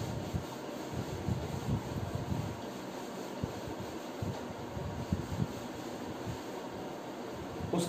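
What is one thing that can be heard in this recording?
A duster rubs across a whiteboard.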